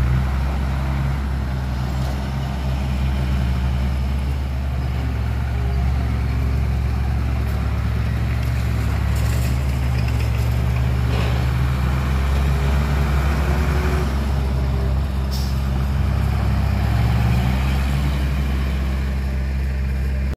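A truck drives off over a dirt track.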